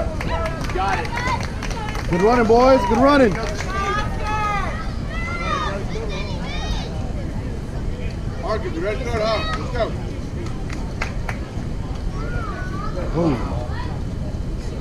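Spectators nearby shout and cheer loudly outdoors.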